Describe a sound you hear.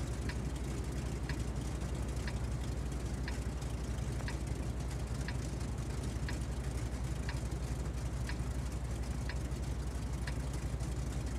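A countdown timer ticks once a second.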